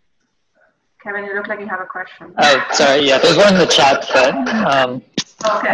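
A young woman speaks calmly through a headset microphone on an online call.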